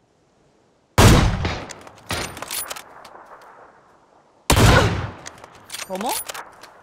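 A sniper rifle fires loud shots that echo away.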